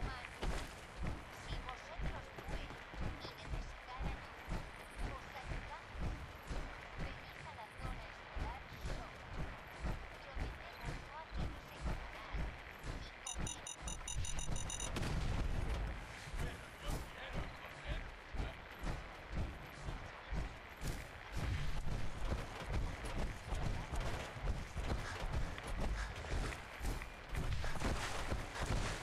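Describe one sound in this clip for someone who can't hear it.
Heavy metal footsteps thud in a steady rhythm.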